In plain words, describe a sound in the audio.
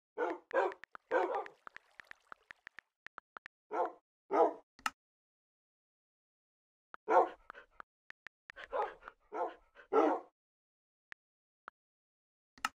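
Keyboard keys click in quick taps.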